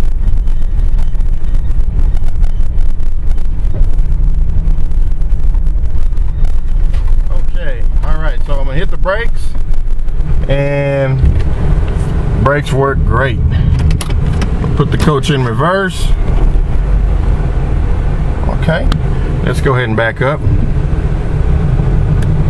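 A vehicle's engine rumbles steadily while driving.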